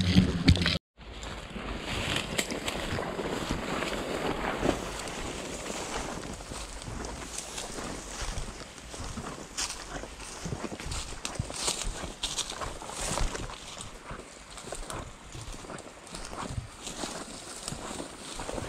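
A papery wasp nest crackles and rustles as it is handled.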